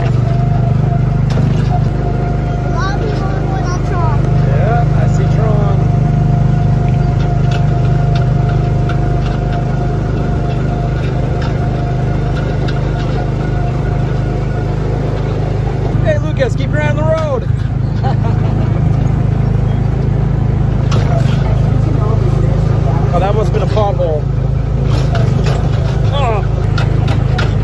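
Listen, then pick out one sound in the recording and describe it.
A ride vehicle hums and rumbles steadily along a track.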